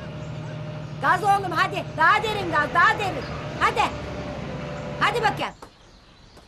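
An elderly woman wails and cries out loudly nearby.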